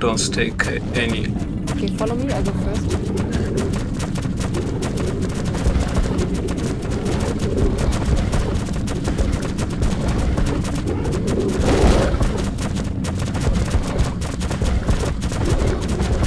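Footsteps crunch steadily over rocky ground.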